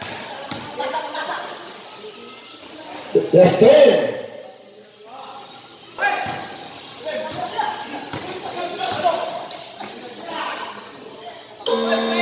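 Young men shout and call out across an echoing court.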